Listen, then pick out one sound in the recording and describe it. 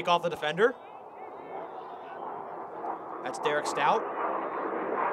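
A crowd of spectators cheers from the sideline.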